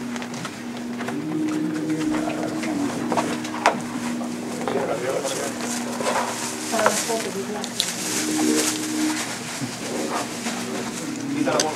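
A frame knocks and rustles as it is handled.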